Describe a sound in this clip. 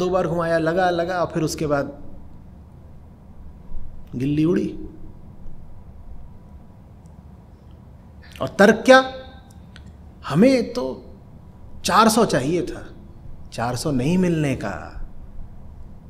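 A middle-aged man speaks into a close microphone with earnest, halting pauses.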